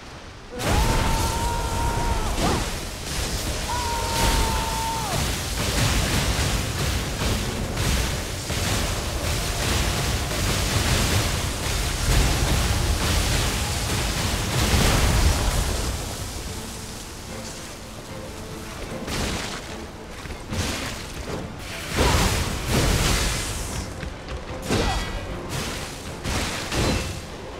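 A heavy sword whooshes and clangs against an enemy.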